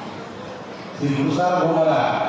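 An elderly man speaks into a microphone, heard through loudspeakers.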